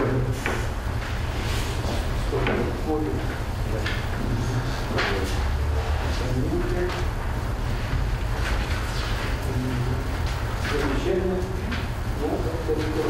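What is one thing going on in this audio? Paper sheets rustle in a man's hands.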